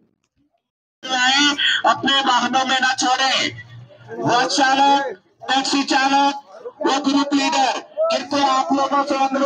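A crowd of people talk all around.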